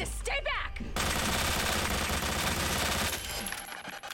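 Rapid gunshots ring out at close range.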